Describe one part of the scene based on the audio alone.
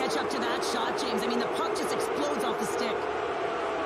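A puck clacks off sticks and the goal.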